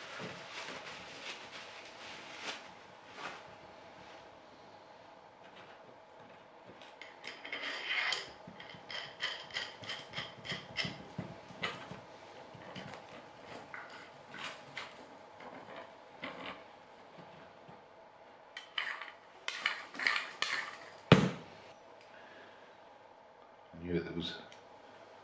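Metal parts click and scrape as they are handled.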